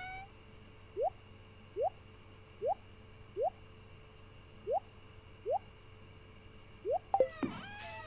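A short rising game blip sounds each time an item is moved.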